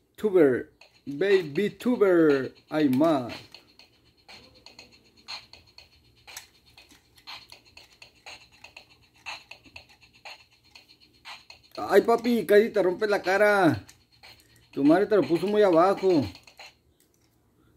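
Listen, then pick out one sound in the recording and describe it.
A baby's toy plays a faint electronic tune.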